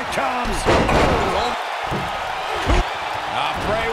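Wrestlers thud onto the ring mat.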